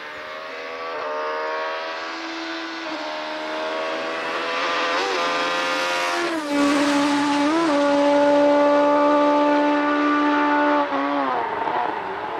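A rally car engine changes gear with brief dips in pitch.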